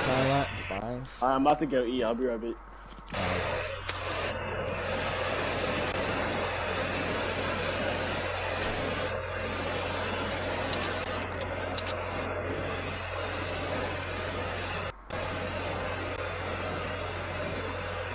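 Footsteps patter quickly on grass.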